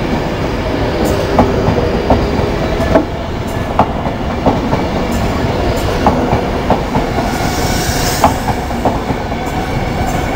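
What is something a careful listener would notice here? A train rumbles past close by with a steady low roar.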